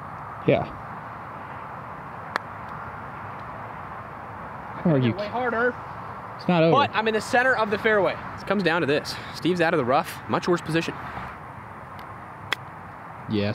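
A club strikes a golf ball with a sharp click.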